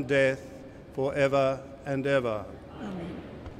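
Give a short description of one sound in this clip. An elderly man chants through a microphone in a large echoing hall.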